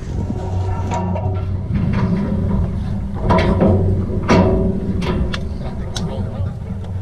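Metal gates clank and rattle.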